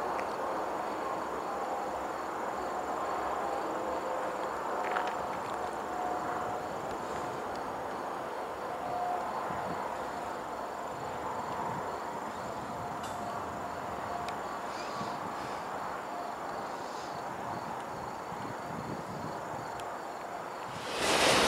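Steel wheels squeal and clack on the rails.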